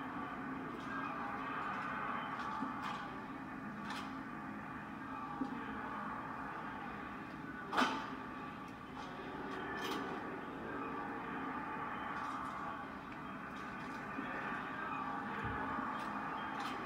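Video game sound effects play from loudspeakers in a room.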